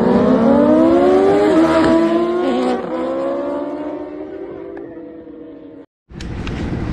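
Racing motorcycles roar past at high speed, engines rising in pitch and then fading away.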